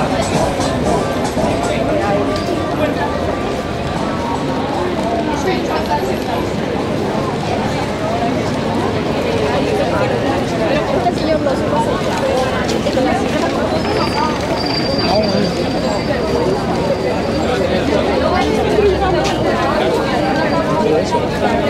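Footsteps of many people walk along a paved street.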